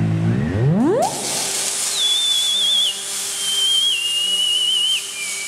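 A high electronic tone wavers and steps down over a loud steady hiss.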